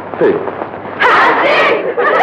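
Women laugh and cheer loudly.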